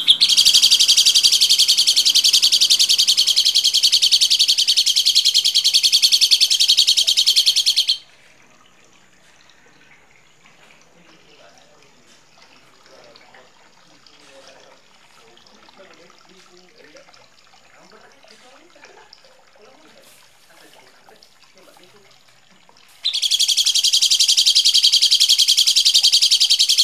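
Birds sing harsh, rapid, loud chirps close by.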